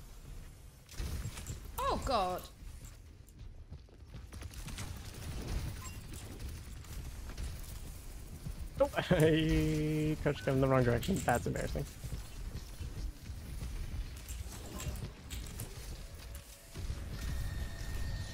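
Gunfire and magic effects crackle and whoosh in a video game.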